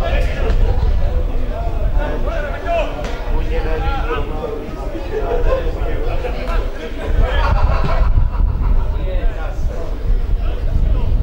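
Young men shout to one another from a distance outdoors.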